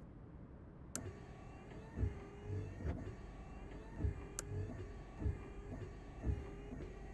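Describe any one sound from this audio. Windshield wipers sweep back and forth with soft, regular thumps.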